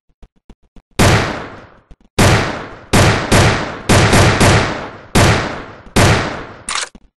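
A pistol fires several loud shots in quick bursts.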